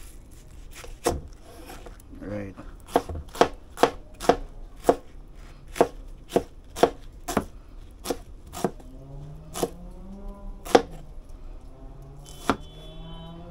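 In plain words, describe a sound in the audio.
A knife chops through an onion onto a plastic cutting board with sharp, regular knocks.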